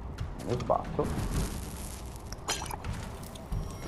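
A sword slashes through an enemy with a wet impact.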